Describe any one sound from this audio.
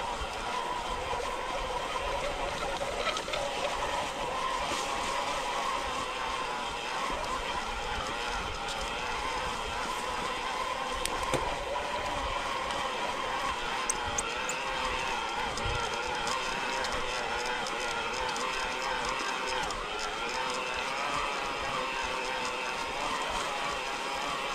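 Bicycle tyres roll over bumpy grass.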